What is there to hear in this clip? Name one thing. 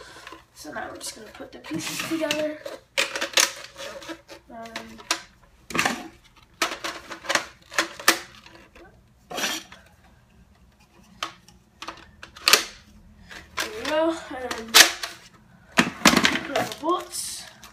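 Plastic parts click and snap together.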